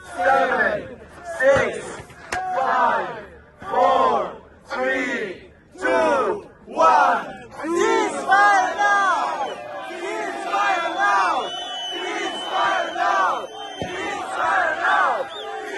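A young man chants loudly through a megaphone.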